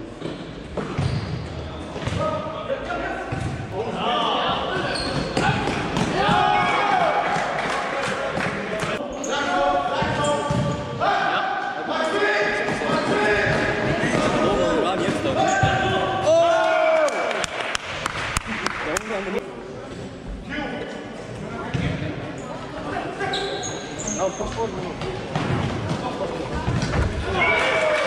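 A ball thuds as it is kicked.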